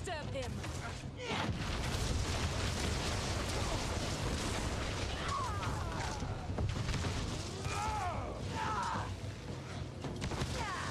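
Fighting sounds of spells and blows crash and rumble steadily.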